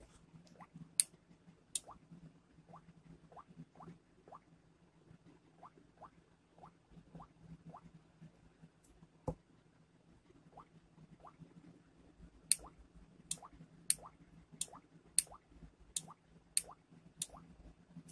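A relay clicks sharply on and off, several times.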